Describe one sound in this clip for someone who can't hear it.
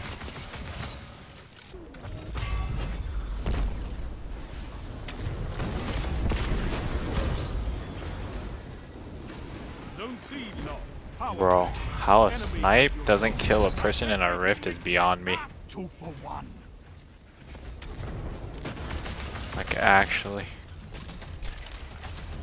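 Gunfire and blasts crackle from a game.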